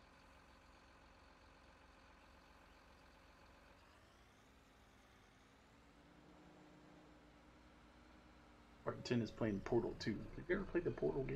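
A heavy forestry machine's engine hums steadily, its pitch rising for a moment.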